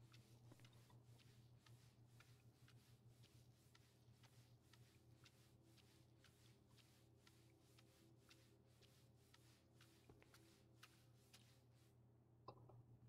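A cloth scrubs rhythmically against a hard surface.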